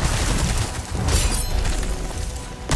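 A knife slashes with a sharp swish.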